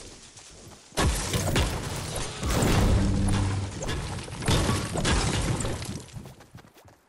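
A pickaxe strikes rock with sharp cracks.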